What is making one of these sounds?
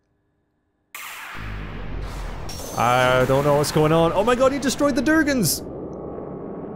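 A magic spell swells with a low, shimmering rumble.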